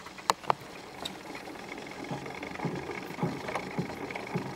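A gramophone record hisses and crackles under the needle.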